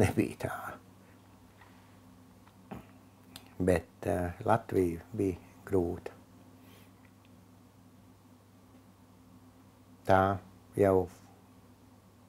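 An elderly man speaks calmly and thoughtfully, close by, with pauses.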